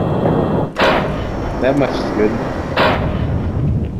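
A rifle is switched for a sniper rifle with a metallic clack.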